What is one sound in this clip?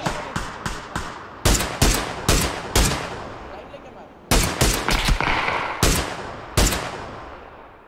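Rifle shots crack in rapid bursts and echo away.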